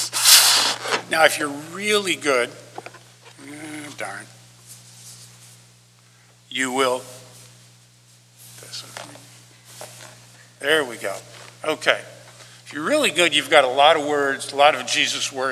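An older man talks calmly into a microphone.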